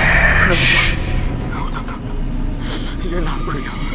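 A young man shouts in panic.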